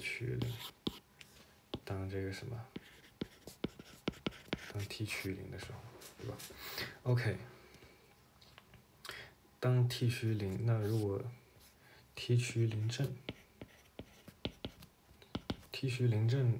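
A stylus taps and scratches on a tablet.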